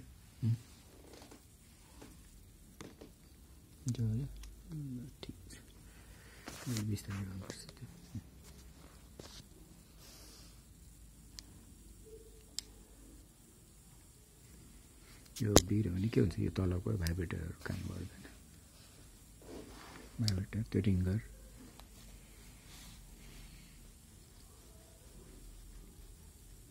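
Small plastic parts click and tap as a phone is taken apart by hand.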